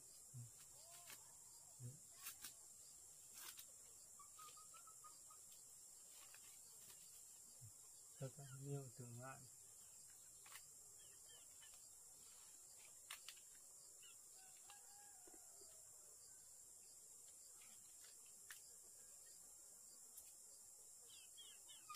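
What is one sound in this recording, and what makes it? A knife taps and scrapes against bamboo shoots.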